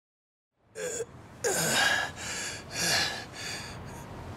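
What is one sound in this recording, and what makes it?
A man groans and pants in pain, close by.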